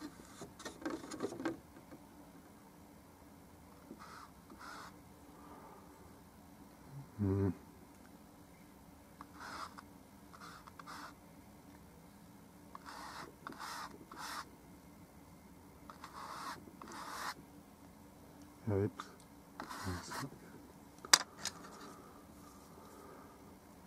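A paintbrush brushes and dabs softly on a canvas and a palette.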